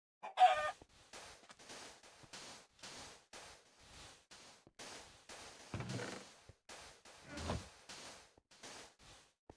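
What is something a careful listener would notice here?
A shovel digs rapidly into sand with repeated crunching scrapes.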